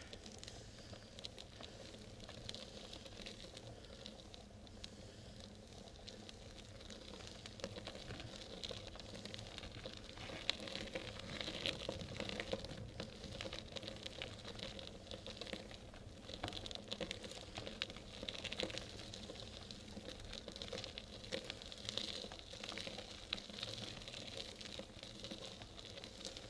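Bicycle tyres roll steadily over rough asphalt.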